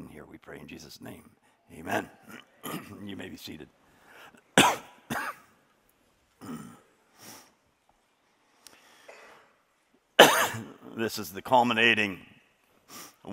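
A man speaks with feeling through a microphone, pausing often.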